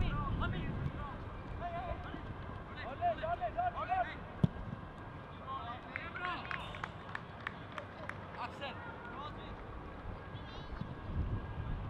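Players shout to each other across an open field, some distance away.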